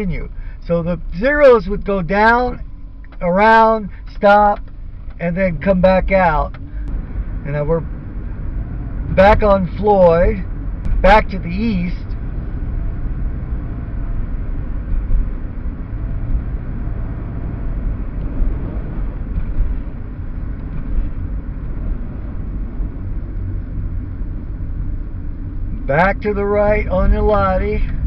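A car's tyres rumble steadily on the road.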